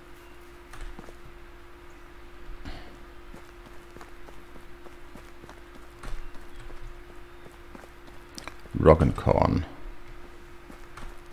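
Footsteps tread softly on grass and earth.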